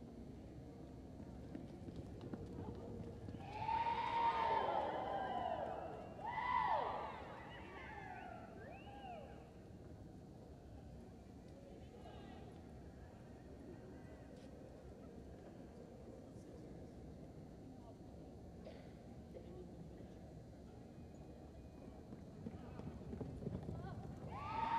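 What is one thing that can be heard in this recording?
A horse's hooves thud on soft dirt.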